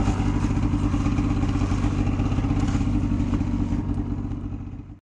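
A snowmobile engine roars steadily close by, fading away at the end.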